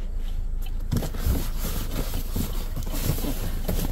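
Cardboard boxes scrape and thud as they are loaded.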